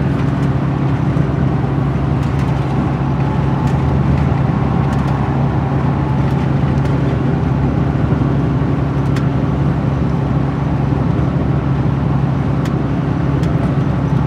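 A vehicle engine hums steadily from inside as it drives along.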